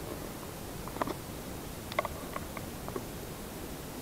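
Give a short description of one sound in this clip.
Dry leaves rustle softly under an animal's feet.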